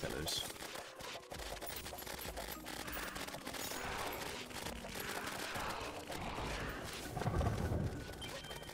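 Rapid electronic blasts and hit sounds crackle in a busy game battle.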